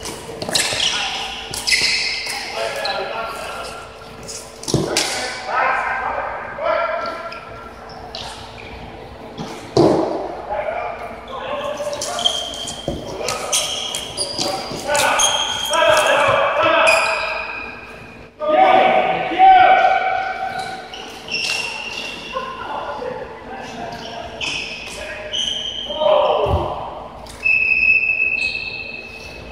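Young men shout to each other across the hall.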